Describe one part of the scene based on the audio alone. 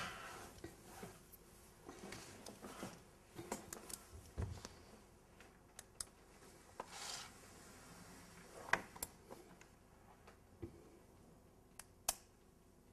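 Small knocks and rustles come from handling things on a table close by.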